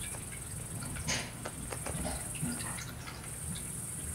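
Cats scuffle and thump softly on a padded floor.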